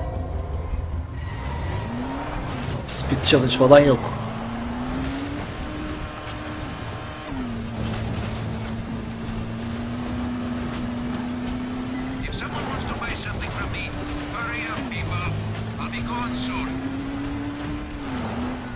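A buggy engine hums steadily, rising and falling in pitch as it speeds up and slows down.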